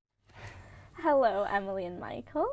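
A young woman speaks cheerfully and close to a microphone.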